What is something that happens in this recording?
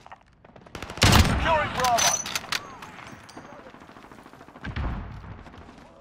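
A sniper rifle fires loud shots.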